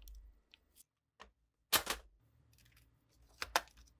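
A plastic tool case is set down on a wooden table.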